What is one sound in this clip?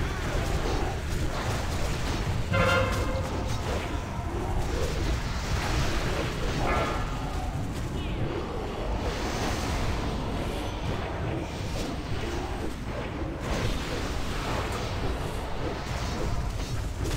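Spell effects and battle sounds crackle and clash continuously.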